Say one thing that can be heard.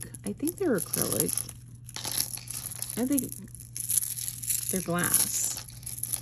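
Beads clink and rattle against each other as they are handled.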